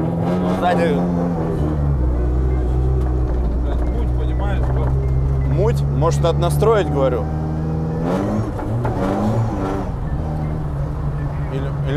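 A car engine drones and revs up and down.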